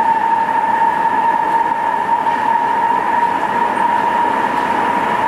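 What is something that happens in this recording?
A subway train whines and rumbles steadily as it runs.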